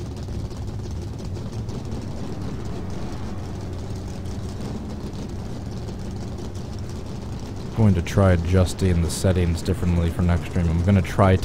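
Race car engines drone steadily.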